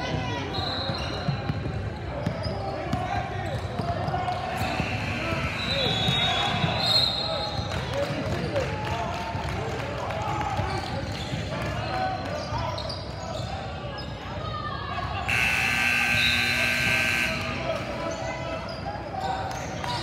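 Young girls shout and call out across the gym.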